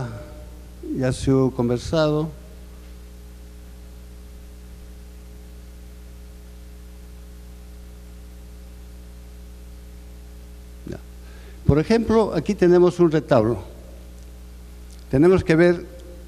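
An older man speaks calmly into a microphone, in short bursts with long pauses.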